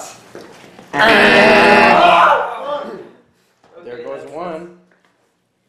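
Young men burst out laughing loudly.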